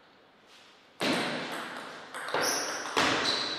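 A ping-pong ball clicks against paddles and the table in a quick rally, echoing in a large hall.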